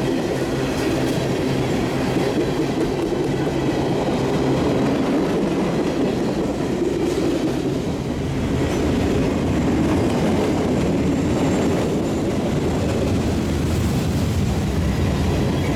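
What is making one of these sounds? A long freight train rumbles past close by.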